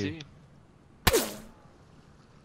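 A gunshot cracks once.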